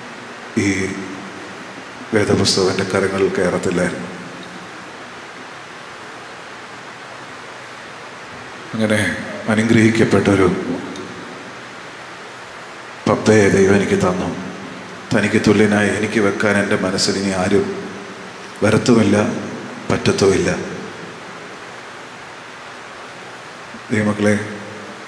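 A man sings slowly through a microphone in short phrases with long pauses.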